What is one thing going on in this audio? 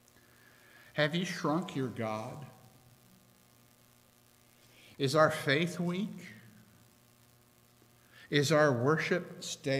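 A middle-aged man speaks calmly through a microphone, in short phrases with pauses.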